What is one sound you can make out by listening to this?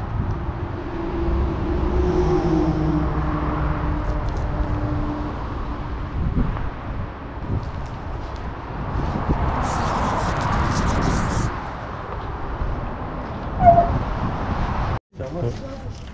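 A paint roller rolls and squishes across a wall.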